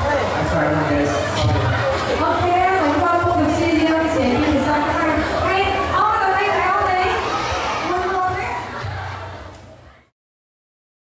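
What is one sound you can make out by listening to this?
A young woman speaks with animation through a microphone over loudspeakers.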